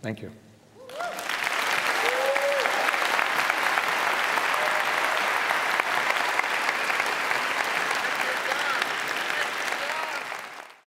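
People in an audience cheer and whoop.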